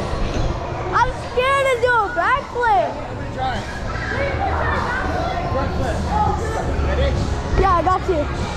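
A child squeals loudly several times.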